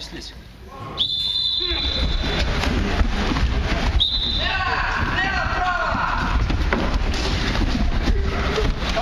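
A group of men shout and grunt.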